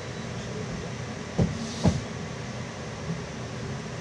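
A windscreen wiper sweeps across the glass with a thud.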